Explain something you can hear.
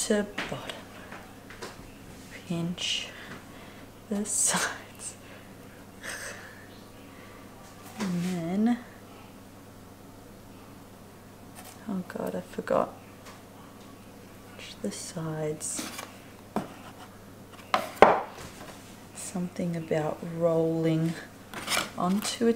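Hands fold and press bread dough on a floured wooden board.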